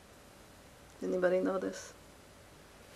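A woman speaks briefly and softly close to a microphone.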